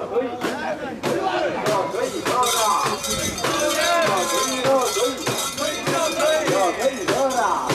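A crowd of men chants and shouts loudly close by.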